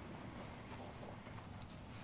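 Cloth rustles as a towel is lifted.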